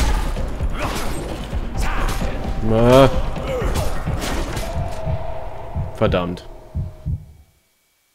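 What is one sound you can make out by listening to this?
Men grunt and groan as they fight.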